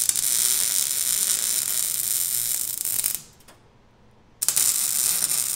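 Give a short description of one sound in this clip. An arc welder buzzes and crackles steadily, stopping briefly before starting again.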